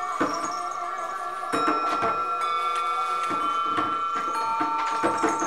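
Singing bowls are struck with soft knocks.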